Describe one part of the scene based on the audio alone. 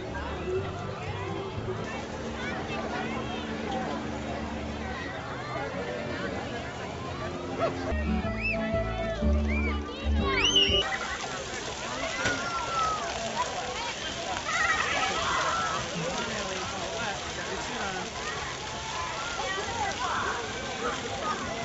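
Water splashes and sprays.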